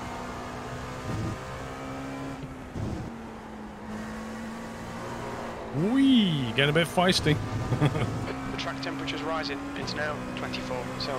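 A racing car engine drones steadily and shifts gears.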